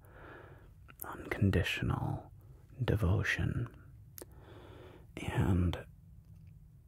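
A man speaks calmly and closely into a microphone, in short bursts with pauses.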